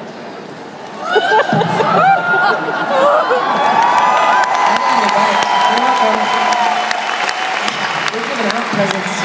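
A crowd of young women screams and shrieks excitedly nearby.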